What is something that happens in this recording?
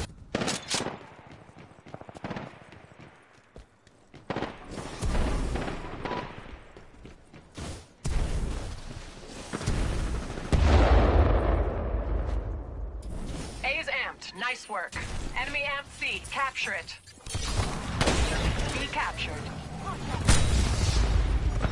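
Gunfire crackles in bursts.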